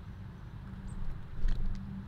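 A small bird's wings flutter as it flies past.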